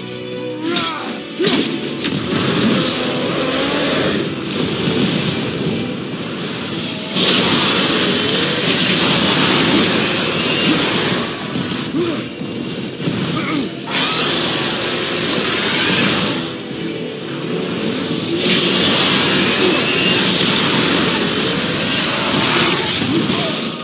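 A huge beast roars and growls.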